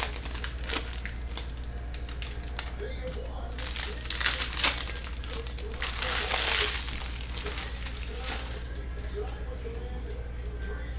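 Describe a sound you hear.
Trading cards shuffle and rustle in hands.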